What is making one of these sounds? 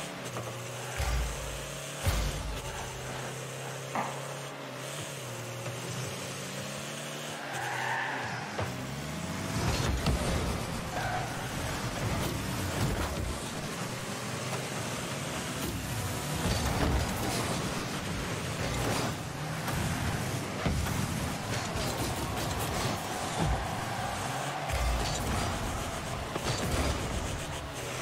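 Game car engines hum and boost with whooshing rushes.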